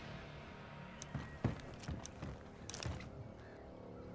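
Armoured footsteps thud and clank on wooden boards.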